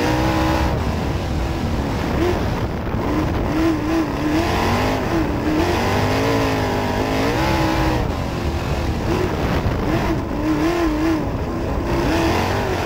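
Tyres rumble and grind over the dirt track.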